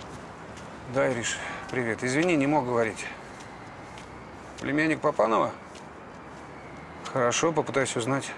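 A middle-aged man talks calmly on a phone close by.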